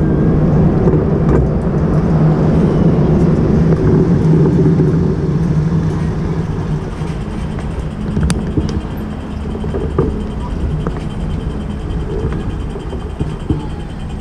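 A city bus rumbles as it pulls slowly past close by.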